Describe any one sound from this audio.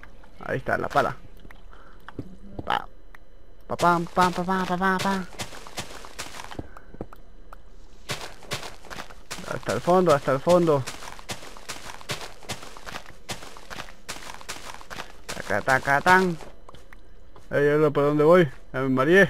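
Dirt and stone crunch in quick, repeated bursts as blocks are dug out.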